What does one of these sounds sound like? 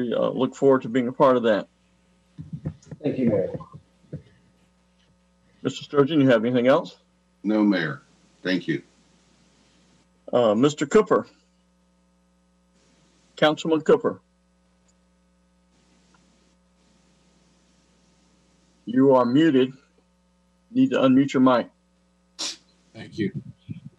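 An older man speaks calmly over an online call, with pauses.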